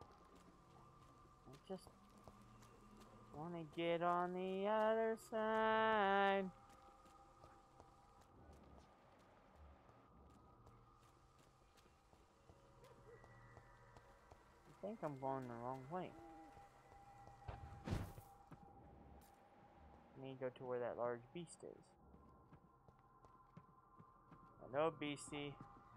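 Footsteps crunch on gravel and wet ground.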